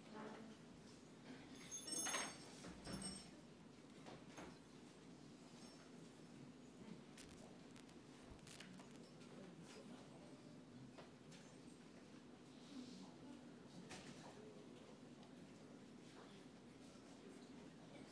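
A congregation murmurs and shuffles softly in a large echoing hall.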